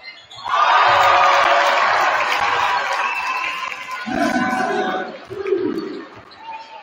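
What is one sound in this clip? A crowd cheers in an echoing gym.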